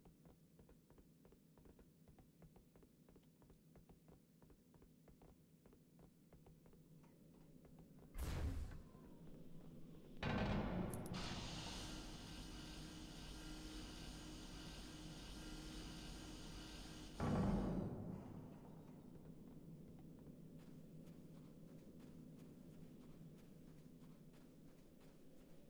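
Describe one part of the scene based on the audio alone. Footsteps tap steadily on a hard metal floor.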